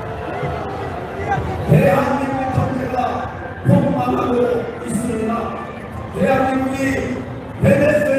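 A middle-aged man speaks forcefully into a microphone through loudspeakers outdoors.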